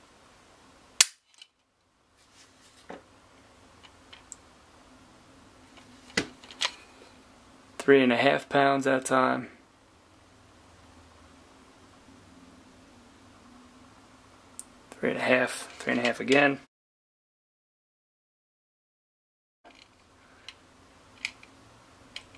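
A pistol's trigger snaps with a sharp click.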